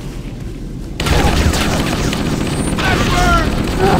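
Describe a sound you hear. Gunfire from a rifle rattles in quick bursts.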